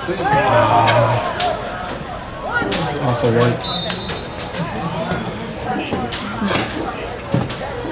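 Young players shout and call out across an open outdoor field.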